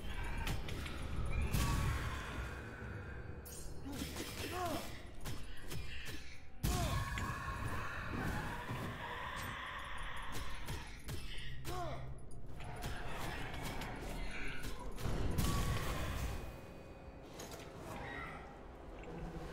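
Sword slashes whoosh and strike again and again.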